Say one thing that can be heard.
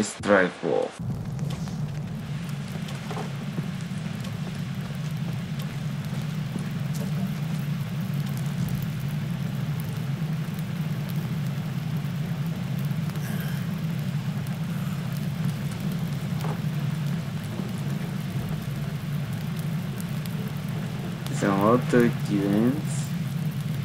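A young man speaks briefly and casually into a microphone.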